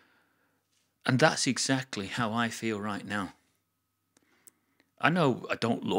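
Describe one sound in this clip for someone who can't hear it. An older man speaks calmly and clearly into a close microphone.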